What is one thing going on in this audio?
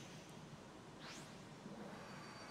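A whooshing game effect sweeps as cards are dealt.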